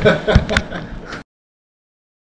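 A young man speaks cheerfully close to the microphone.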